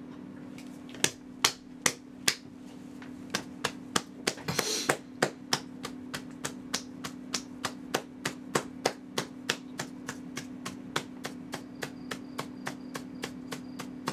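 A man claps his hands in a steady rhythm close to a microphone.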